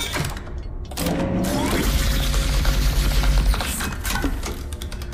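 A machine rumbles loudly.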